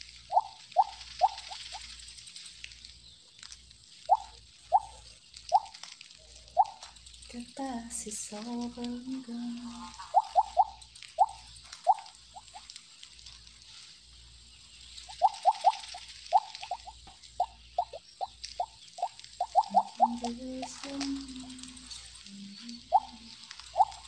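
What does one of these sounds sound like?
Short bright chimes ring out again and again in a video game.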